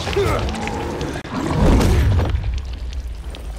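A loud burst of flame roars close by.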